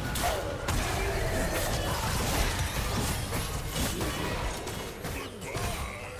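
Video game spell effects crackle and clash in a busy fight.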